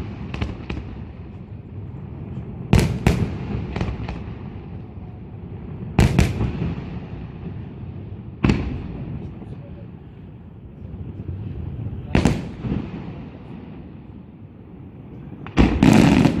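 Fireworks boom and crack in the distance, echoing across the open air.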